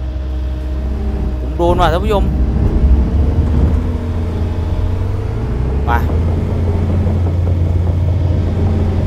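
A heavy diesel engine rumbles steadily, close by.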